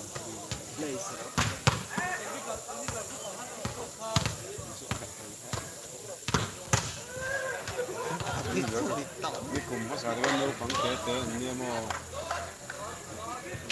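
A crowd of young men and boys shouts and cheers nearby.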